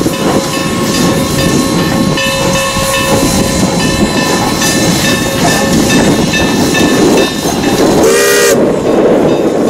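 A steam locomotive chugs loudly close by.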